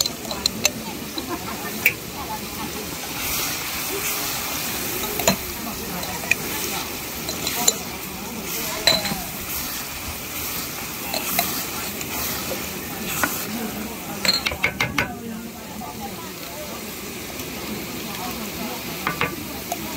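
A wooden spatula scrapes and knocks against a metal pan.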